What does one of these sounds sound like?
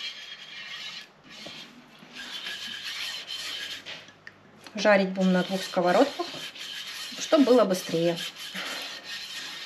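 A pastry brush swishes softly across a frying pan.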